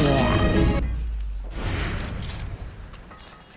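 Swords clash and strike loudly in a fight.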